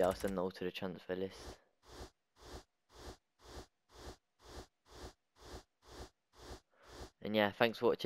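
A game menu gives short, quick blips over and over.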